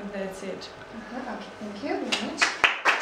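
A young woman talks briefly and laughs.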